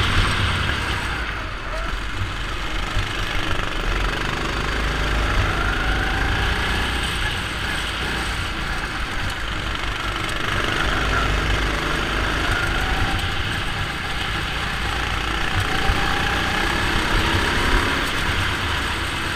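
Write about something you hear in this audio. Wind rushes past a moving go-kart.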